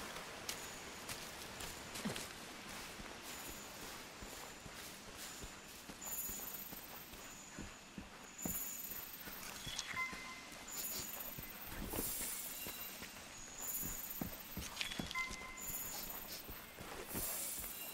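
Footsteps run through rustling undergrowth.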